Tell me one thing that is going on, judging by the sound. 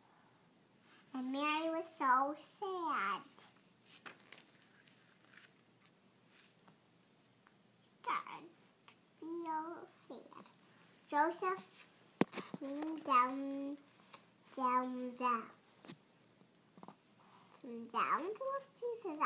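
A young girl reads aloud close by, in a high voice.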